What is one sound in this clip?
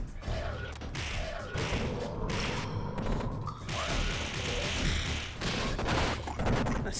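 Punches and kicks thud and smack in a brawl.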